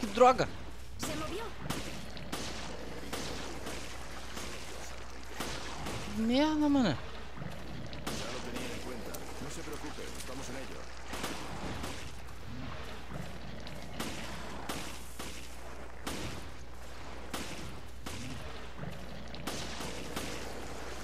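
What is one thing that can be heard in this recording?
Gunshots from a pistol crack again and again.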